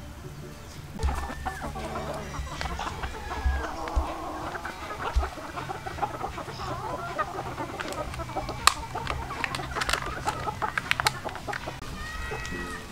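Chickens cluck and chirp close by.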